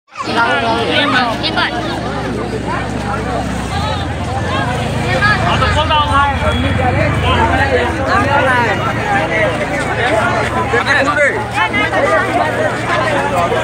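A large crowd of men and women chatters loudly all around, outdoors.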